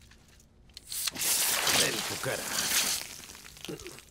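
A soda can hisses open and fizzes loudly as foam sprays out.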